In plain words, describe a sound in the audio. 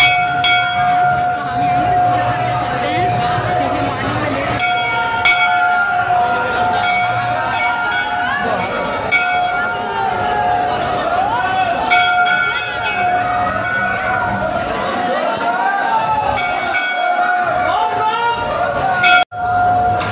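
A crowd of men and boys talks and chants all around, close by.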